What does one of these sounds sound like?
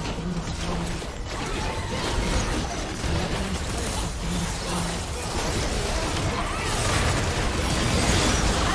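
Game spell effects and explosions crackle and boom in a busy battle.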